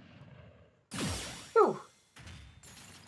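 A loud whooshing blast rings out from a video game.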